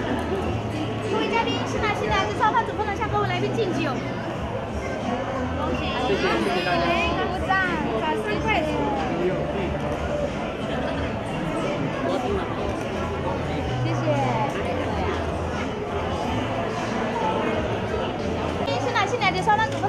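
A crowd of men and women chatters and cheers in a large echoing hall.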